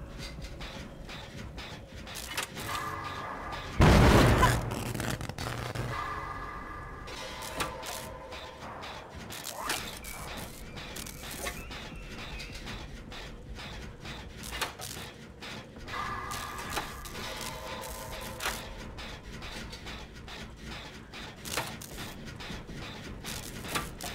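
Metal parts clank and rattle as a machine is worked on.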